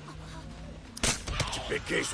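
A gunshot cracks.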